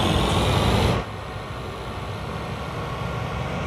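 A combine engine sounds muffled and quieter from inside the cab.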